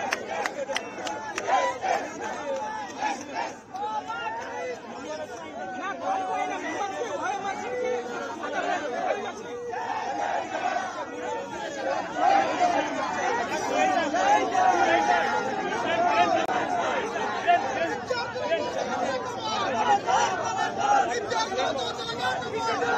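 A crowd of men shouts and chants close by.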